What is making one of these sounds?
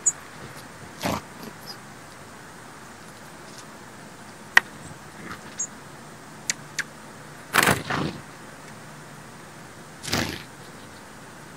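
Small birds' wings flutter briefly close by.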